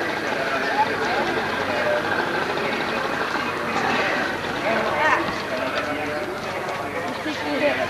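A small boat motor hums across the water.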